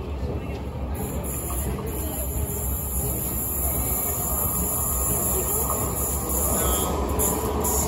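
A train approaches along the tracks and rumbles into the station.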